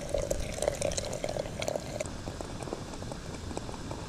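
A glass lid clinks onto a teapot.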